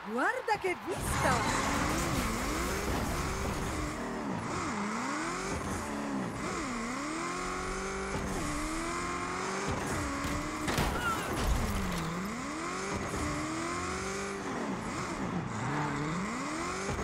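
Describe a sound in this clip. A car engine revs up and down as the car speeds around.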